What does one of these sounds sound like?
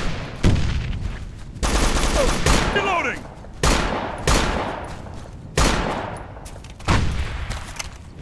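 A rifle fires loud, echoing single shots.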